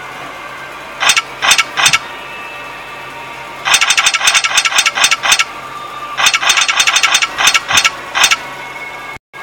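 Rapid metallic clicks rattle as a stone puzzle turns and locks.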